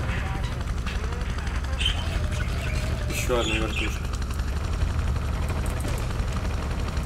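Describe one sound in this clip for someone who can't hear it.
Helicopter rotor blades thump steadily and loudly.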